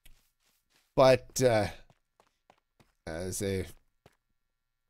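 A middle-aged man speaks with animation into a headset microphone, close up.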